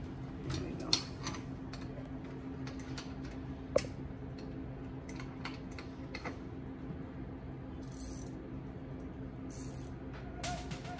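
Small metal parts click and clink close by.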